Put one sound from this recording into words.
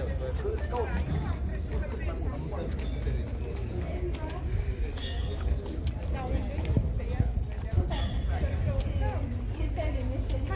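Several adults talk nearby outdoors in a steady murmur of voices.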